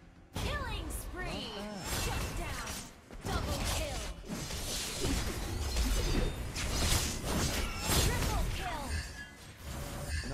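Magic spells crackle and blast in quick bursts of a video game fight.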